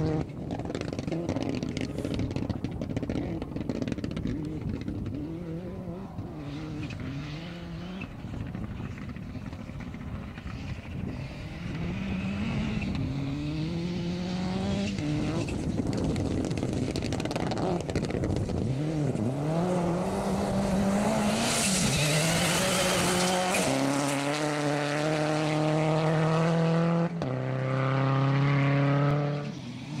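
A rally car engine roars and revs, rising and falling in pitch as it shifts gears.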